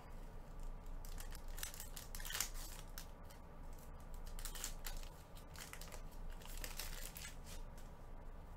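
A foil card pack crinkles as hands open it.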